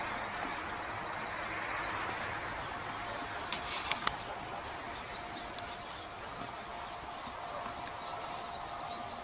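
A jet plane rumbles faintly, high overhead.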